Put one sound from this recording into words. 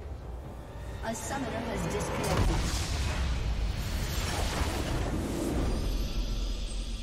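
A large structure bursts apart with a booming blast.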